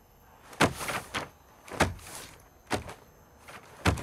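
Paper rustles as a hand brushes over it.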